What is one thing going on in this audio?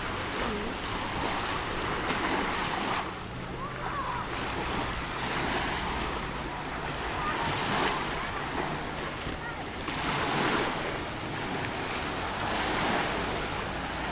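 Small waves wash onto a pebble shore and draw back over the stones.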